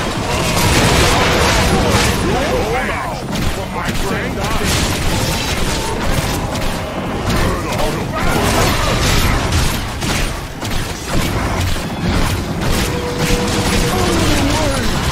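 Game sound effects chime for kills.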